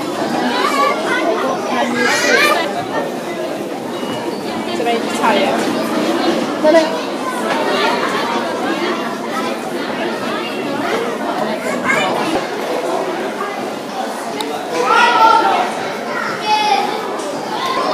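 Children and adults chatter and call out nearby in a busy, echoing hall.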